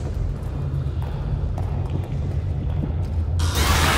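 Footsteps run on a hard floor.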